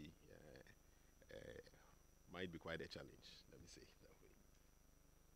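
A middle-aged man speaks with good humour into a microphone.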